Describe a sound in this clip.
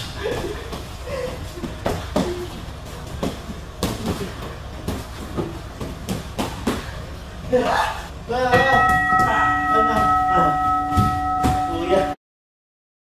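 Kicks and punches thud sharply against pads in a large echoing hall.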